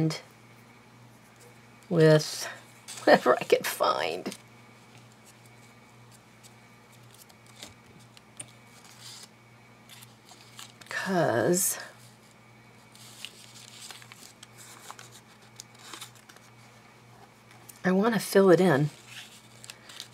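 Paper rustles and crinkles softly as hands handle it.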